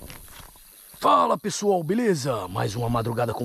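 A man speaks in a low voice, close by.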